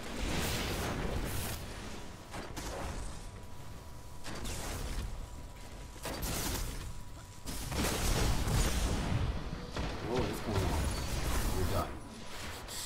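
Gunfire from a video game rifle rattles in quick bursts.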